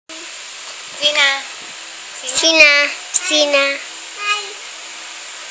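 A young girl speaks in a high, lively voice close by.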